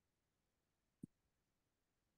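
A clipboard knocks down onto a wooden table.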